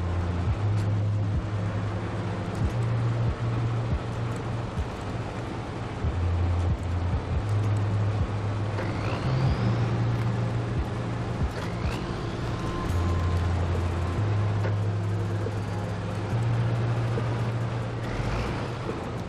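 A heavy truck engine rumbles steadily, rising and falling as it climbs.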